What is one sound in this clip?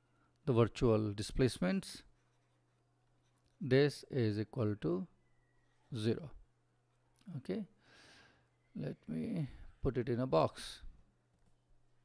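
A man speaks calmly and closely into a microphone, in short phrases.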